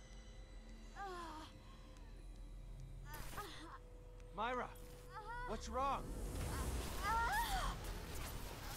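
A man asks a worried question.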